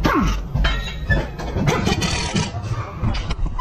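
An impact wrench rattles loudly.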